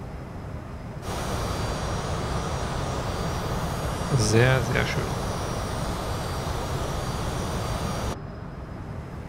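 Jet engines roar steadily outside an aircraft.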